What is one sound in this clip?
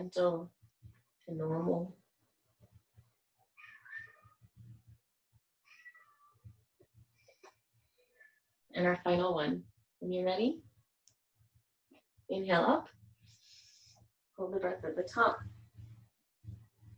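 A woman speaks calmly and clearly close by, giving instructions in bursts with pauses.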